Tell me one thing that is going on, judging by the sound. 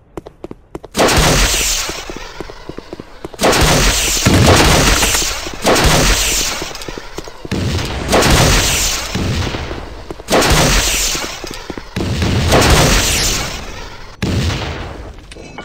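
Rockets whoosh and explode with loud booming blasts, one after another.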